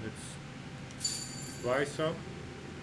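A bright electronic chime rings once.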